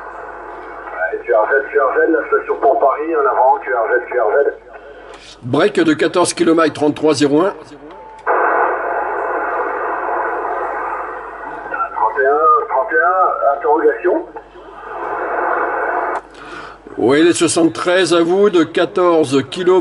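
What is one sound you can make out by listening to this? A man talks through a crackly radio receiver.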